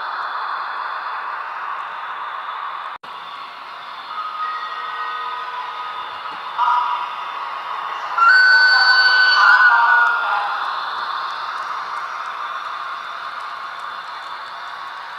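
A train rolls past with a steady rumbling hiss.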